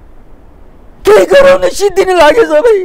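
A middle-aged man speaks calmly and with animation into a close microphone.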